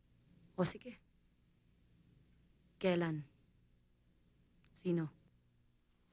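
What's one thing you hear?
A young woman lets out short, loud moans close by.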